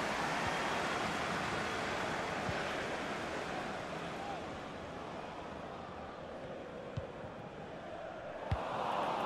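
A stadium crowd roars steadily in a large open space.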